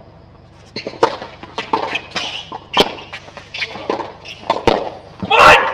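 Tennis balls are struck with sharp pops, back and forth.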